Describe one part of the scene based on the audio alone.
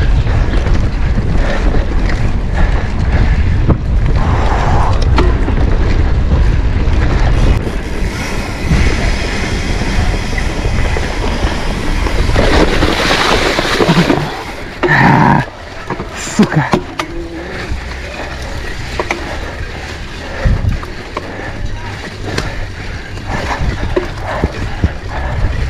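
Wind rushes past, loud and rumbling.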